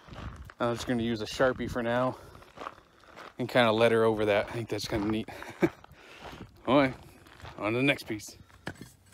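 A bearded man talks calmly, close to the microphone.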